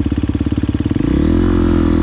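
A motorbike engine revs up loudly.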